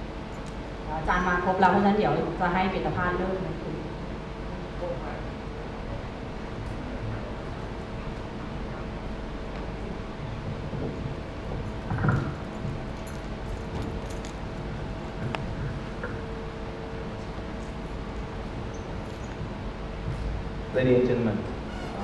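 A man speaks through a microphone, echoing in a large hall.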